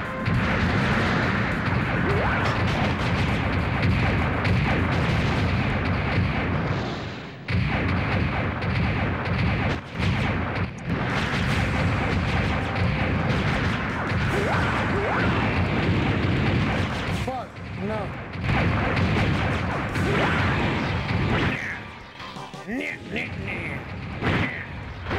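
Heavy metal footsteps stomp steadily.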